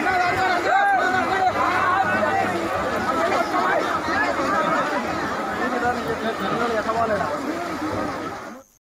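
A large crowd of men and women shouts and talks loudly outdoors.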